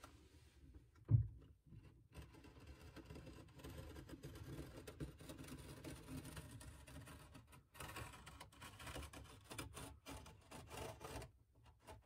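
A knife blade scrapes and slices through plastic film.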